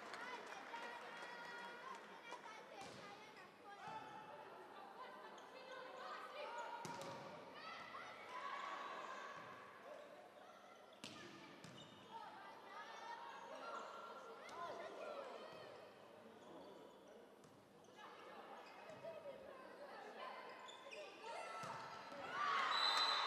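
Players shout and call out to each other across the court.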